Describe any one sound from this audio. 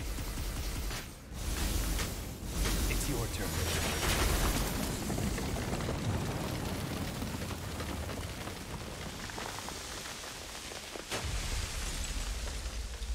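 Heavy crashes and rumbling thuds of a fight boom loudly.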